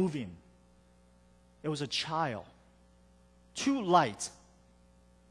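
A man speaks calmly through a microphone in short phrases.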